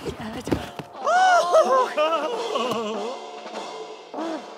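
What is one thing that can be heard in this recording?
A cartoon giraffe shouts with animation.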